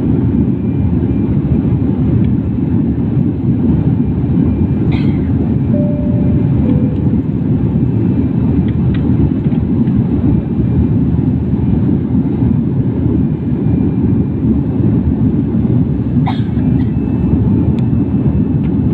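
A jet engine roars steadily inside an aircraft cabin.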